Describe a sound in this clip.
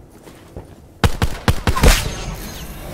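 A pistol fires several sharp shots.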